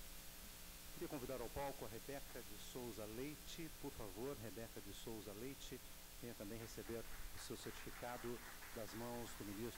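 A man speaks steadily into a microphone, heard over loudspeakers in a large room.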